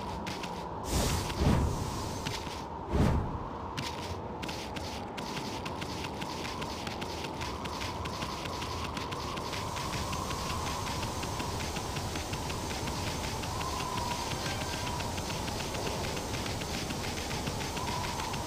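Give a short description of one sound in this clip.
Water splashes as an animal swims through it.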